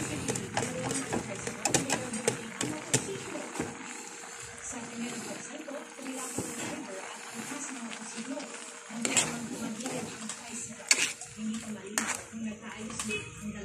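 A metal spoon scrapes and clicks against a pan.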